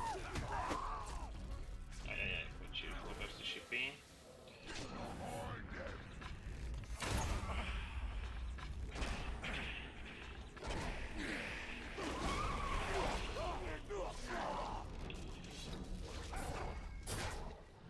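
A beast snarls and growls.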